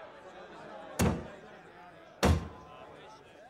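A metal goblet knocks twice on a wooden table.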